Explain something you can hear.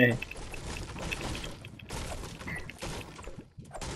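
A pickaxe thuds repeatedly into a tree trunk.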